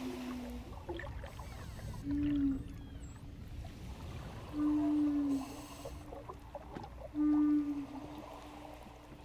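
A wooden flute plays slow, breathy notes close by.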